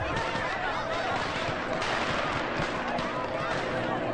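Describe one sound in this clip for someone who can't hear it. A crowd of young women cheers and shouts excitedly.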